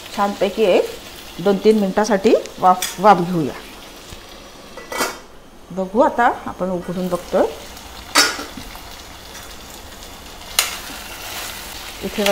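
A metal spatula scrapes and stirs food in a metal pan.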